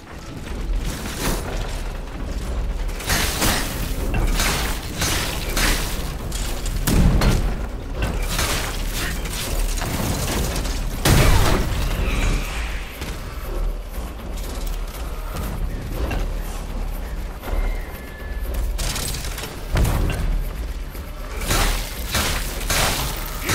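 Blades clash and slash in a fight, with sharp hits.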